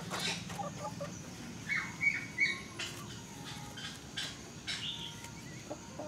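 Small birds chirp sharply.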